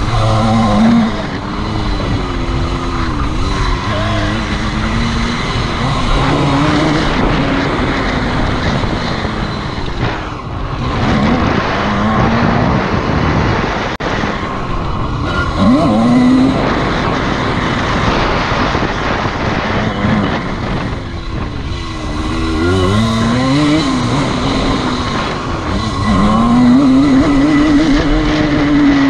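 A dirt bike engine revs up and down loudly, close by.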